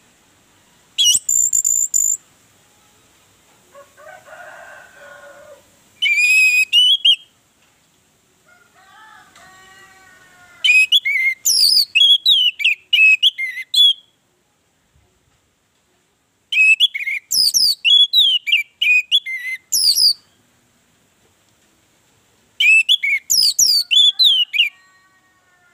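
An orange-headed thrush sings loud bursts of whistles and rapid notes.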